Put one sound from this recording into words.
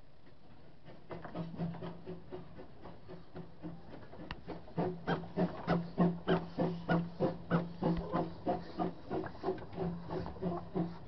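A steam locomotive chuffs in quick, rhythmic puffs close by, growing louder.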